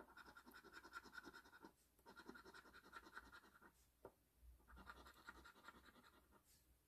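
A coin scratches rapidly across a scratch card in short bursts.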